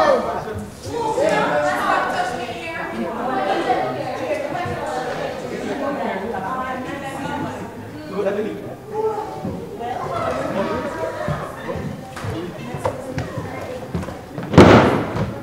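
Several actors talk loudly on a stage in a large hall.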